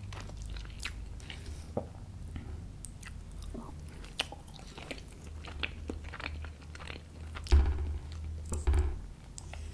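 Cutlery clicks and scrapes against a plate close to a microphone.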